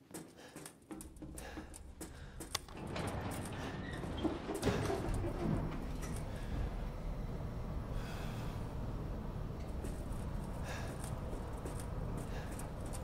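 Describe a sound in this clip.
A lift motor rumbles steadily.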